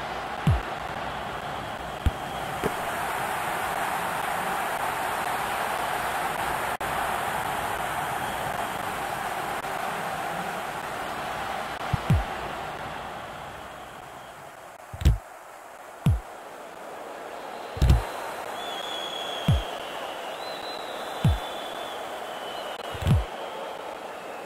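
A stadium crowd roars steadily, then dies down.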